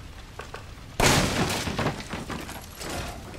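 A wooden crate smashes and splinters apart.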